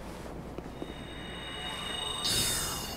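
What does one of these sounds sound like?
A magic spell rings out with a bright shimmering burst.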